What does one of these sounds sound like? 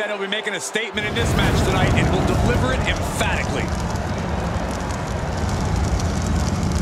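Pyrotechnic flames burst and roar loudly.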